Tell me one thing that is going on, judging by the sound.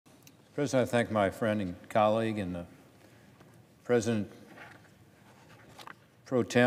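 A middle-aged man speaks calmly and deliberately into a microphone.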